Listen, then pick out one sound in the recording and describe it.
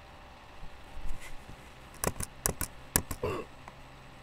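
A man speaks quietly and slowly close to a microphone.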